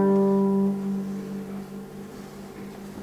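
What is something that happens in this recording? A guitar chord rings out and slowly fades.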